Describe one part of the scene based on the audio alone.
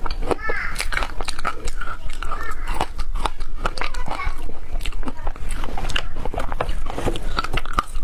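A young woman crunches and chews ice close to a microphone.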